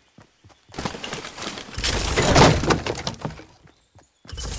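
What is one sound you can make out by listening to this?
A supply crate bursts open with a loud rushing sound.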